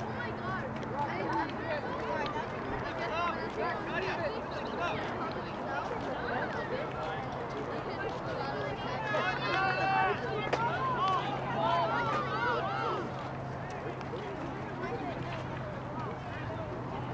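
A crowd of spectators and players chatter and shout outdoors.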